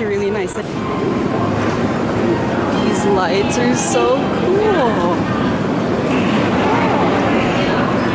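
Footsteps and rolling suitcases sound on a hard floor.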